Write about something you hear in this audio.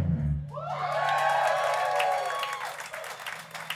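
An electric guitar squeals with feedback.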